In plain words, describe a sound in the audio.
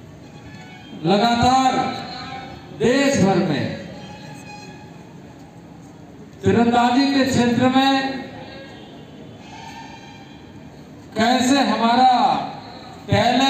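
A man speaks loudly into a microphone in bursts, heard through loudspeakers outdoors.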